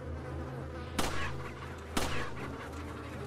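A pistol fires two loud shots that echo briefly.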